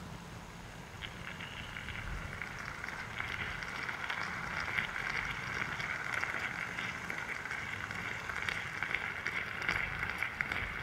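A moka pot hisses and sputters as coffee bubbles up.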